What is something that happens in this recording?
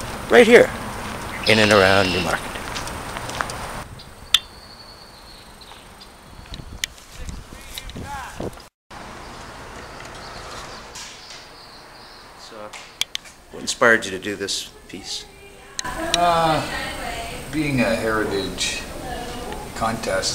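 A middle-aged man talks close by, calmly.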